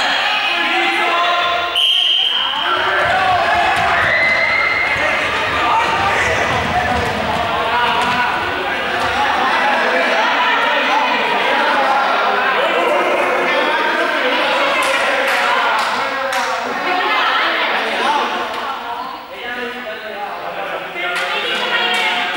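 Many children shout and chatter in a large echoing hall.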